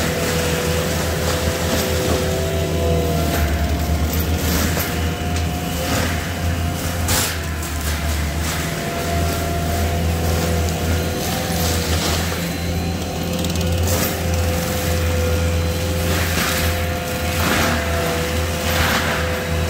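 Branches snap and crack.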